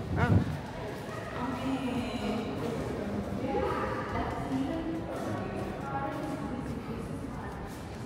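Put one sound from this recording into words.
Adults talk quietly nearby in an echoing room.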